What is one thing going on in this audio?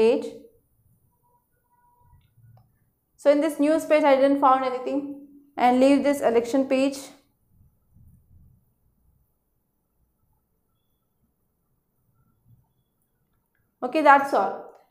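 A woman speaks calmly and clearly close by, in short bursts with pauses.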